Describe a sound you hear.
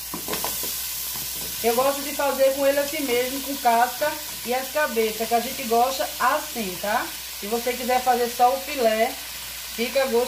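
Shrimp splash and slide into a pot of water.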